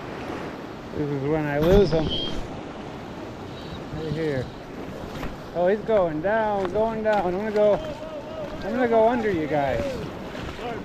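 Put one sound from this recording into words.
A man talks excitedly nearby, outdoors.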